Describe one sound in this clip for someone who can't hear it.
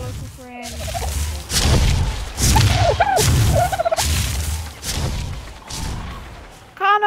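A large dinosaur stomps heavily across sand.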